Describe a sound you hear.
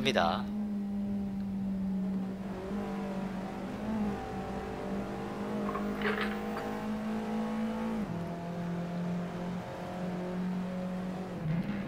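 A racing car engine hums steadily, its pitch dropping now and then as gears change.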